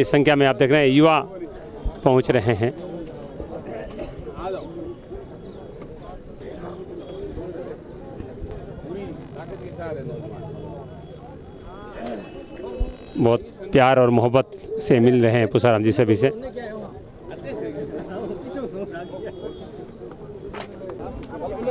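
A crowd of men chatters in the background outdoors.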